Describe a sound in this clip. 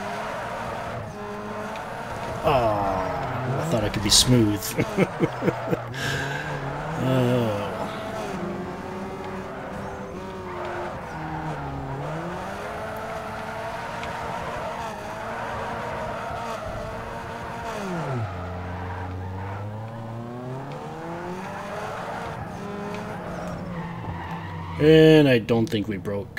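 A car engine revs and whines, rising and falling in pitch.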